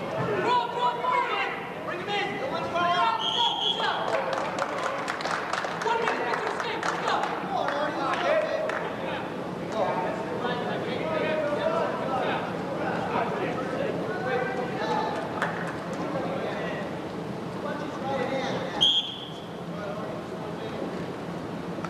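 A crowd of spectators shouts and cheers in a large echoing gym.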